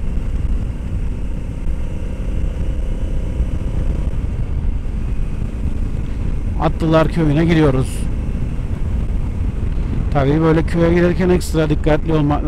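Wind rushes and buffets loudly past a moving motorcycle.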